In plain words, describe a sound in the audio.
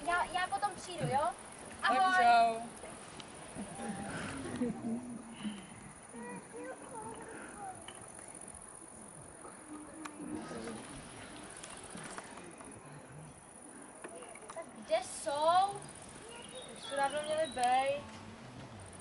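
Young girls speak with animation.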